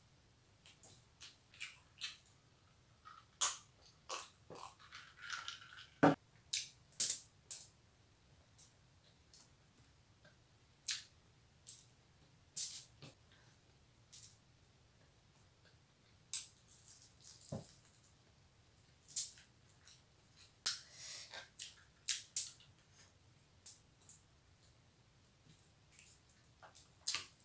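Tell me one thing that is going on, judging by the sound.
A plastic bag crinkles as fingers pick at food.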